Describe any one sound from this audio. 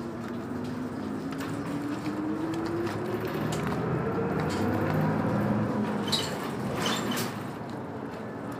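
A bus engine hums and rises in pitch as the bus speeds up.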